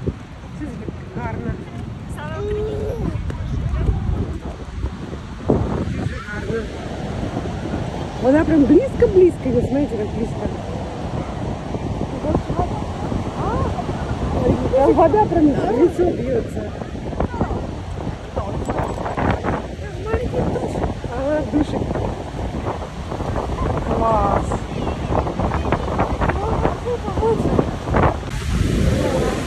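A waterfall roars loudly and steadily nearby.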